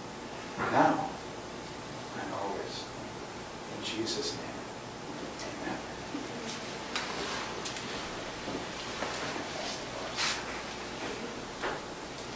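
An older man speaks calmly, reading out, close by.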